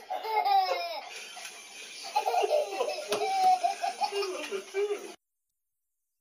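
A young child talks and squeals excitedly up close.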